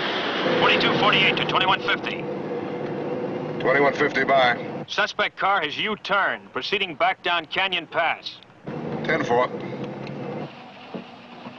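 A man speaks calmly into a radio microphone, heard through a radio.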